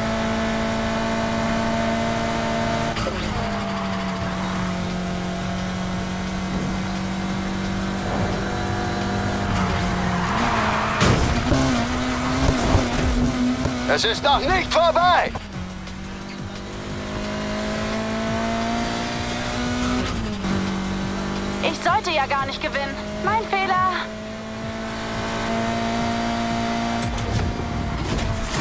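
A car engine roars loudly, its pitch rising and falling as it shifts gears.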